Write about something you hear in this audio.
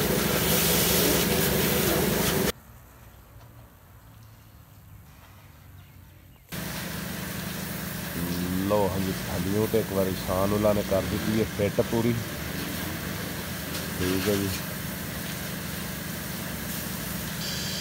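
A pressure washer sprays water with a loud steady hiss.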